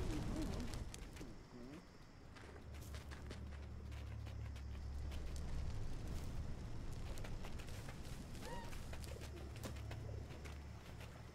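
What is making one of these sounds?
Light paws patter softly over scattered debris.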